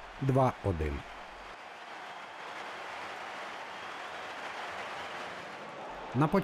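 A large crowd cheers and applauds loudly.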